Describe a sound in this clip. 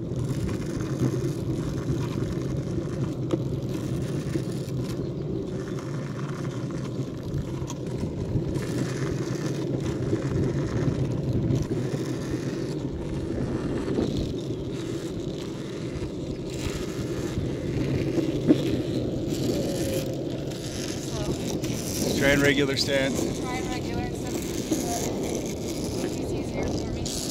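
Skateboard wheels rumble steadily on asphalt.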